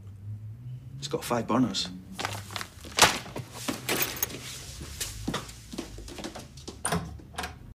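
A man speaks tensely, close by.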